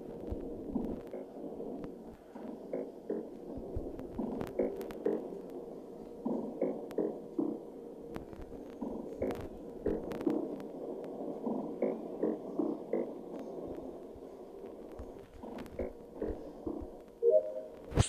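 Electronic beeps sound in quick succession as buttons are pressed.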